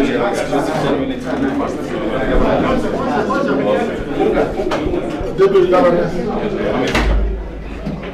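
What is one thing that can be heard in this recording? Several men talk over one another nearby.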